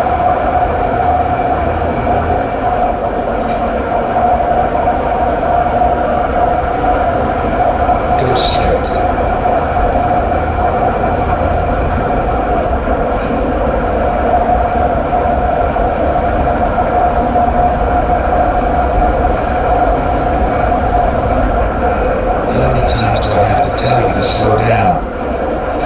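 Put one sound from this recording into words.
A diesel truck engine drones steadily from inside the cab as the truck cruises along a road.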